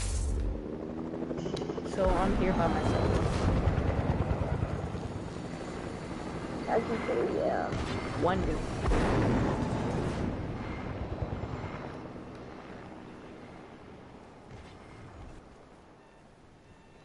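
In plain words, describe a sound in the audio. Wind rushes past steadily, then slowly fades away.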